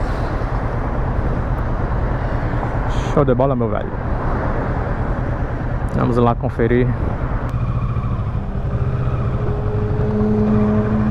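A motorcycle engine rumbles steadily close by.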